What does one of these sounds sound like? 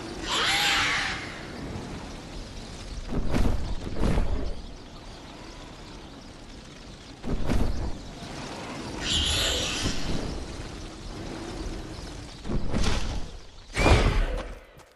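Wind rushes past while gliding through the air.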